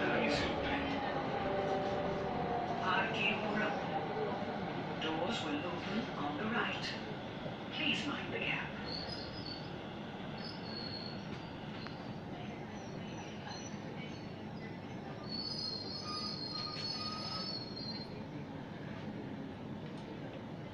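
A train rumbles along steadily.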